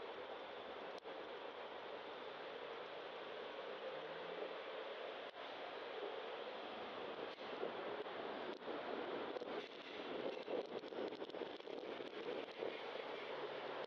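Wind rushes steadily past, loud and close.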